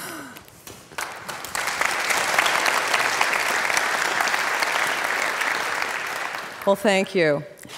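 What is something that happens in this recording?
A large audience applauds in an echoing hall.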